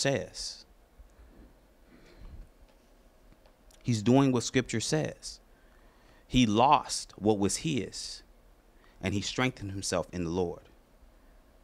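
A man speaks slowly and deliberately into a microphone, with pauses.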